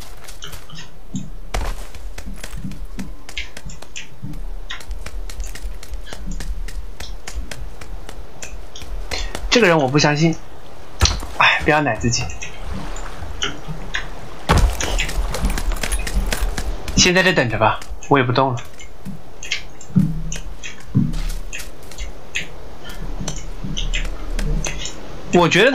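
Footsteps crunch quickly over dirt and grass.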